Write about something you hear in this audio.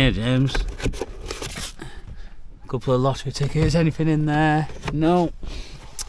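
Paper rustles as hands pull it out.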